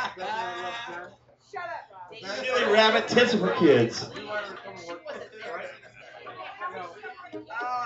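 A second man laughs into a microphone.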